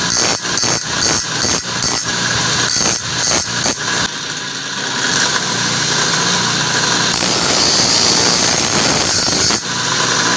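A blade grinds against a spinning wheel with a harsh, rasping hiss.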